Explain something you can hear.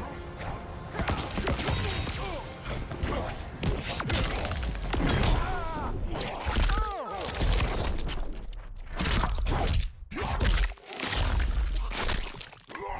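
Game fighters grunt and shout as they trade blows.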